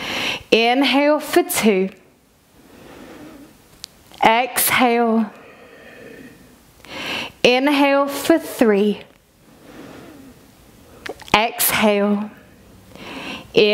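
A woman speaks calmly and clearly, close to a microphone, in short phrases with pauses.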